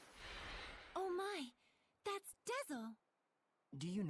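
A young woman exclaims in surprise.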